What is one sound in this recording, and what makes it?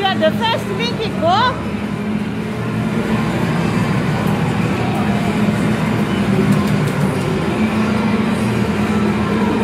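Arcade racing game machines play loud engine roars and music.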